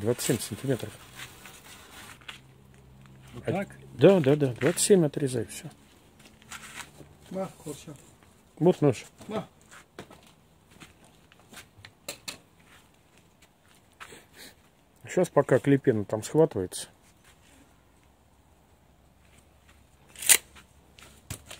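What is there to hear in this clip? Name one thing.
Plastic mesh rustles and crinkles as it is handled.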